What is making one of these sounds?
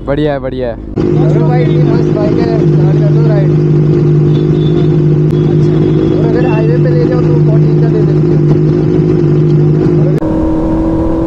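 Motorcycle engines idle with a steady rumble nearby.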